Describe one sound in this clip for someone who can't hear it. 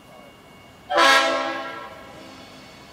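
A diesel locomotive sounds a loud horn in the distance.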